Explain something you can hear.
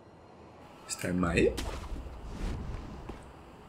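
A body lands with a thud on a tiled roof.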